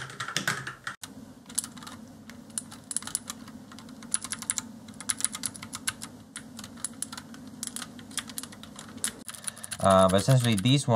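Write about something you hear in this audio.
Keyboard keys click sharply under fast typing.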